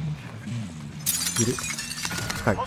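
Glass shatters.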